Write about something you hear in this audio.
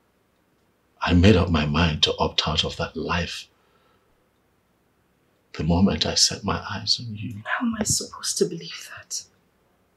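A man speaks earnestly, close by.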